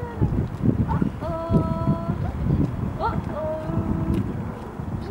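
A little girl babbles happily nearby.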